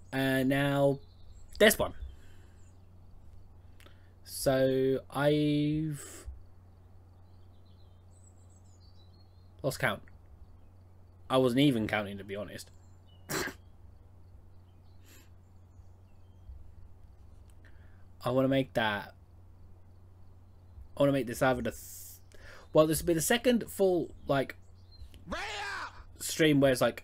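A young man talks casually into a close microphone, in bursts with pauses.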